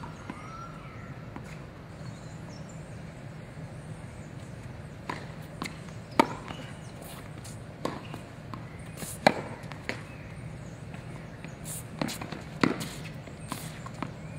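Tennis shoes squeak on a hard court.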